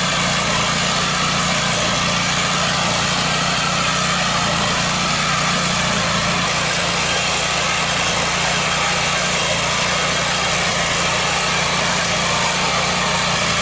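A small engine runs with a steady, loud chug.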